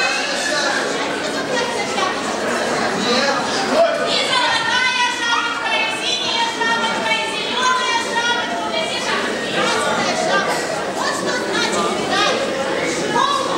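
A woman speaks with animation from a stage in an echoing hall.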